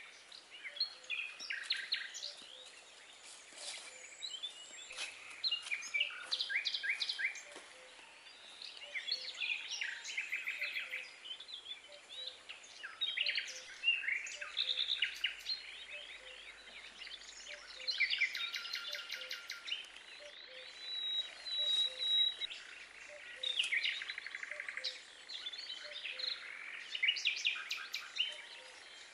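Footsteps rustle through dry leaves and undergrowth.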